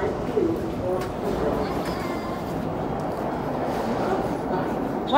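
A low rumbling hum fills a large echoing underground space.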